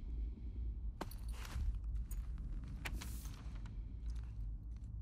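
Paper rustles as a sheet is picked up.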